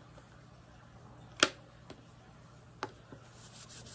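A thin metal plate clicks down onto a rubber mat.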